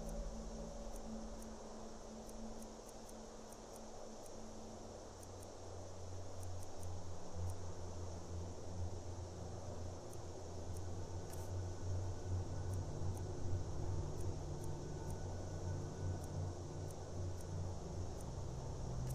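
Soft menu clicks tick again and again.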